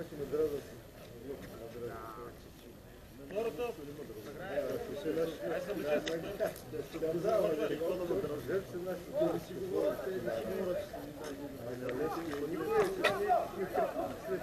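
Several men talk casually close by outdoors.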